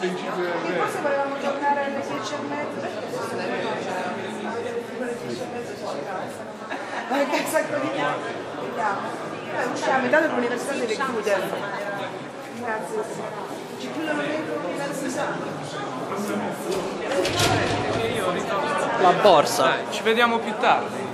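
Young women talk with animation close by.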